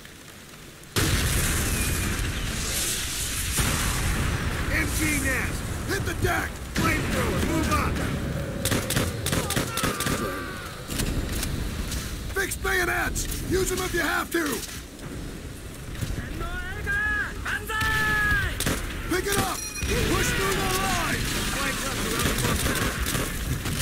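Explosions boom and rumble in the distance.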